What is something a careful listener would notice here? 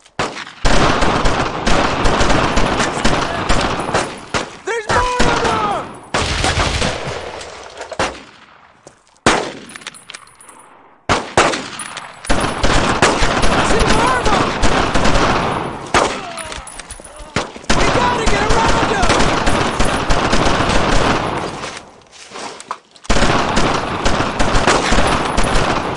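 Rapid gunfire rattles loudly and keeps on in bursts.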